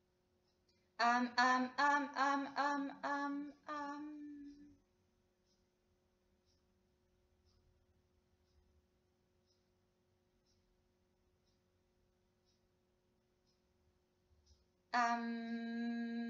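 A young woman sings short, bright notes close by, then holds a long steady note.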